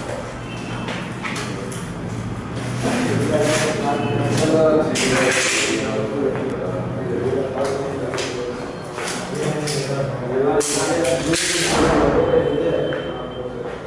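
A young man talks nearby in an echoing, empty room.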